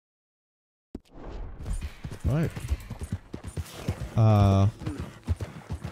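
Horse hooves thud quickly on a dirt track.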